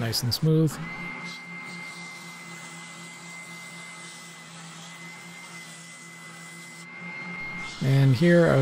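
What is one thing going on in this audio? A spindle sander hums steadily with a high whine.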